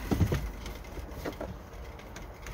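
Plastic parts click and knock close by.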